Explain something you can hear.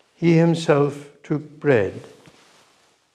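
A man chants in a sung voice through a microphone, echoing in a large hall.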